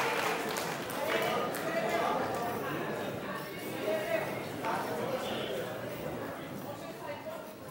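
A small band plays lively folk music.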